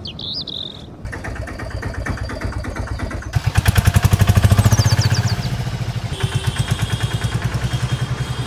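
An auto-rickshaw engine putters rapidly.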